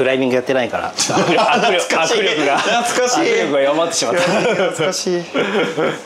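A man laughs loudly nearby.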